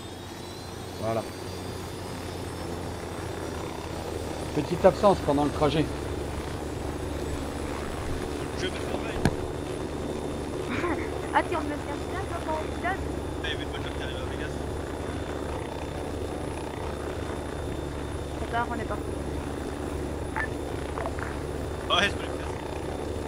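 A man talks casually into a microphone, in short bursts.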